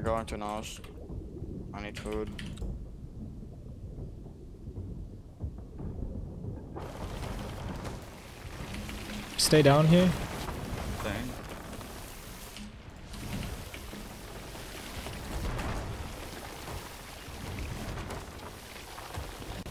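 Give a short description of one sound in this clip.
Water sprays and gushes in through a leak.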